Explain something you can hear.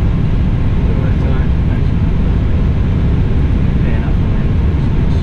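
A man speaks briefly through a headset microphone.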